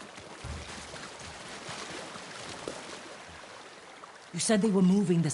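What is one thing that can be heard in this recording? A figure wades and splashes through water.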